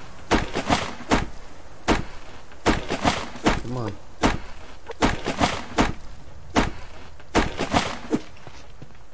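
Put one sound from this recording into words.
An axe chops into a tree trunk with repeated sharp knocks.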